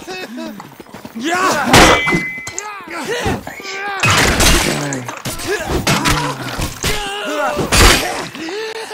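Steel swords clash and strike sharply.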